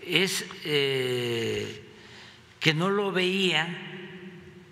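An elderly man speaks into a microphone with animation, drawing out his words.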